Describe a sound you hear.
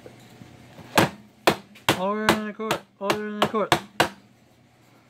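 A wooden gavel knocks sharply on a board several times.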